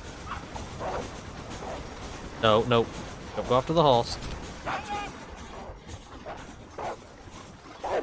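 Wolves growl and snarl nearby.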